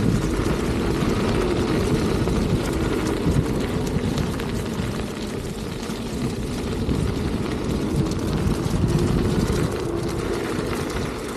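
Tyres roll over leaves and gravel.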